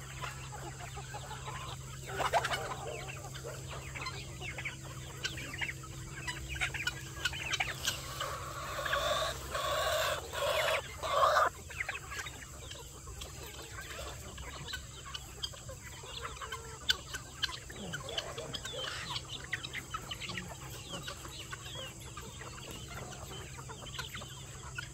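A flock of chickens clucks and chirps outdoors.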